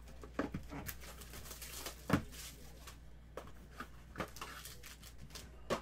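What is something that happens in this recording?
A foil wrapper crinkles in someone's hands.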